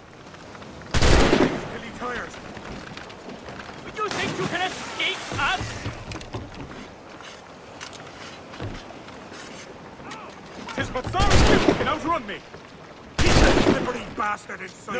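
Muskets fire with loud, booming bangs.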